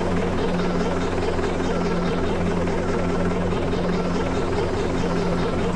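A bus engine rumbles steadily at low speed.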